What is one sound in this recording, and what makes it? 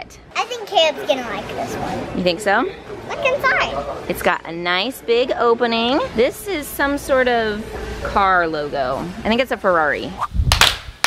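A young girl talks with excitement close by.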